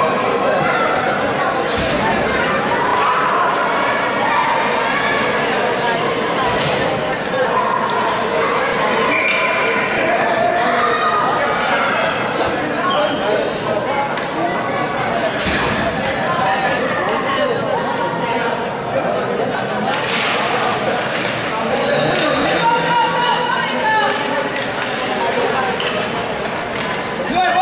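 Skates scrape and glide on ice.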